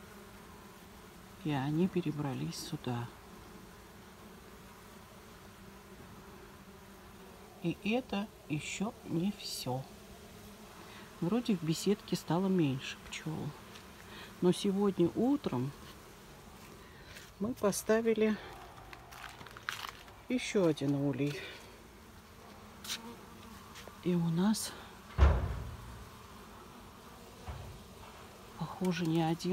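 Bees buzz softly around a hive entrance.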